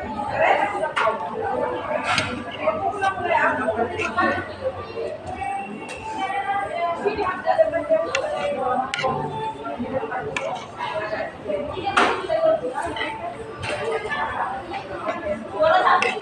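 Metal cutlery clinks against a plate.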